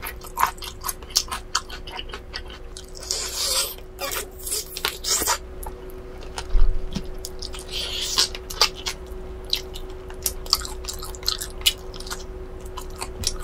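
A young woman chews and smacks her lips loudly close to a microphone.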